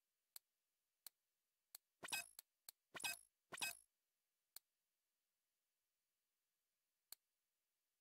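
Short, sharp electronic clicks tick now and then.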